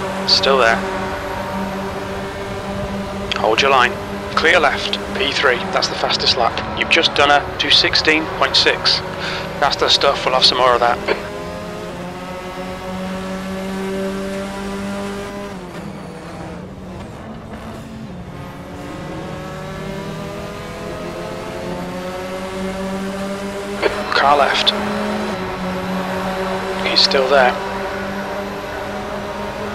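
A racing car engine whines at high revs, rising and falling with gear changes.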